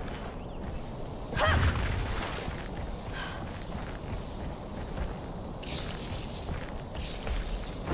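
Footsteps run over grass and stone.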